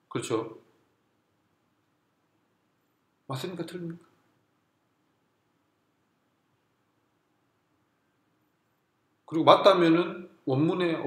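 A man speaks calmly close by, in short bursts with pauses.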